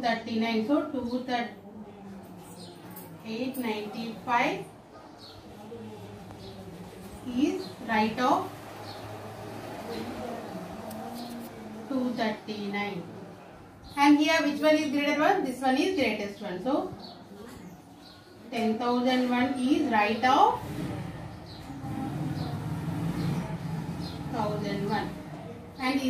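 A woman speaks calmly and clearly, explaining as she teaches.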